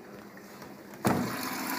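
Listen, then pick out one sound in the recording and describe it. A washing machine drawer is pulled open with a loud rattle.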